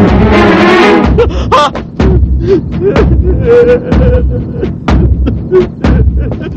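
A young man cries out with strong emotion close by.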